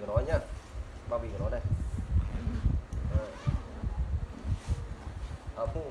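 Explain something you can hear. A fabric bag rustles and thumps as it is handled.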